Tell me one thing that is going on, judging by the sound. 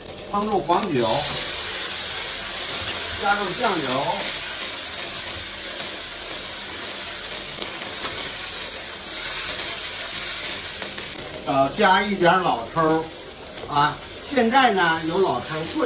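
Oil sizzles and hisses in a hot wok.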